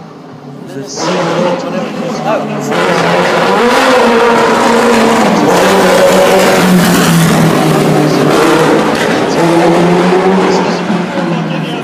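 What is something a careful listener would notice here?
A racing car engine roars loudly as it speeds past close by.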